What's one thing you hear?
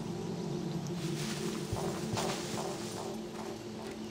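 Leafy bushes rustle as someone pushes through them.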